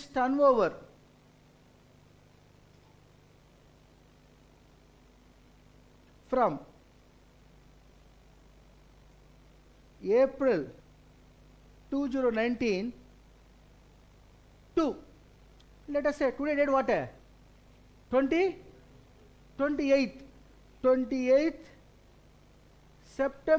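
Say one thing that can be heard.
A middle-aged man speaks calmly into a microphone in short phrases with pauses.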